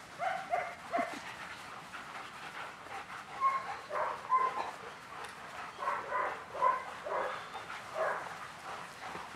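Puppies yelp and whine in short high bursts.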